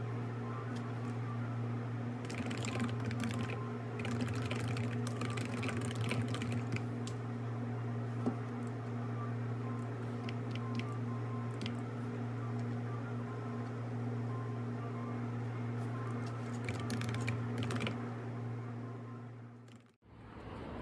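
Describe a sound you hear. Fingers tap quickly on a keyboard.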